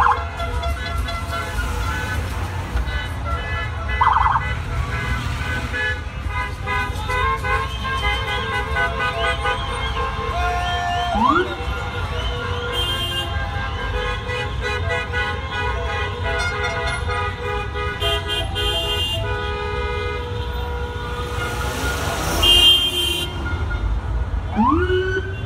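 Police sirens wail and yelp nearby.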